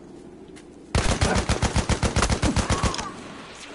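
A machine gun fires rapidly in a long burst.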